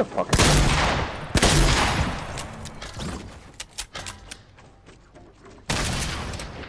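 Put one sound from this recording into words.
Loud gunshots blast with a booming echo.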